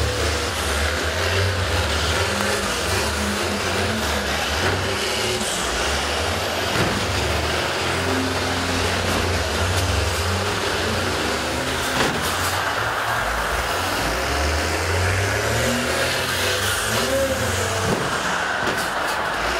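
Bus engines rumble and rev loudly nearby.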